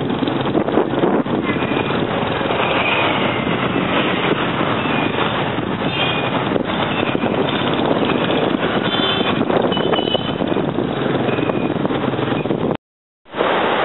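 Motorbike engines buzz past on a busy street.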